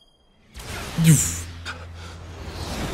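A sword swings with a buzzing whoosh.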